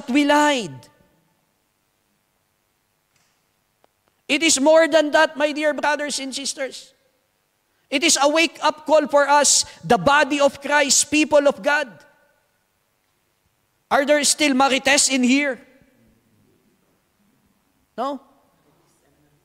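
A man preaches with passion into a microphone, in bursts with pauses between them.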